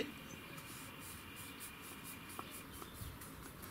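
A thumb rubs softly across a metal plate.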